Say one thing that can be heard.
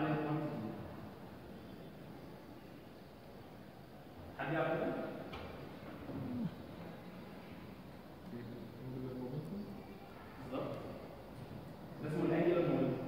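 A young man speaks calmly, like a lecturer.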